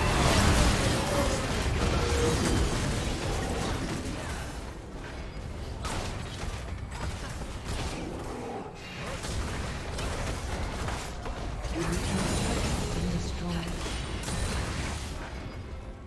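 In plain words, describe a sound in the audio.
Video game spell blasts and weapon hits crackle and thump in a busy battle.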